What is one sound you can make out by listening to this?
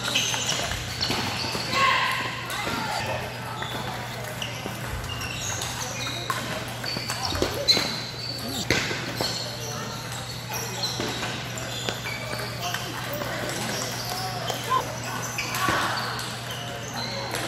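Many ping-pong balls bounce around in a large echoing hall.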